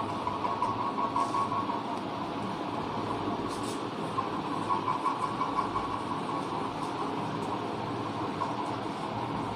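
A whiteboard eraser rubs and squeaks across a board.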